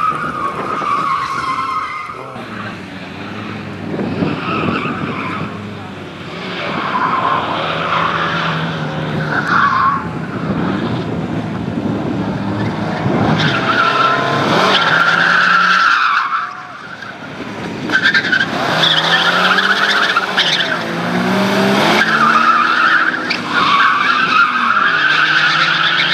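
Tyres squeal on asphalt as a rally car slides.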